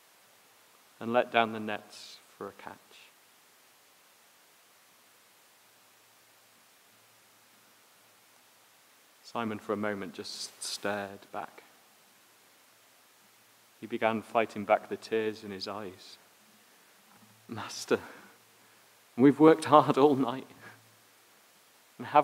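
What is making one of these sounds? A man speaks calmly into a microphone, in short phrases with long pauses.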